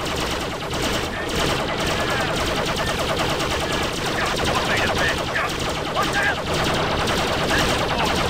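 Blaster guns fire in quick bursts.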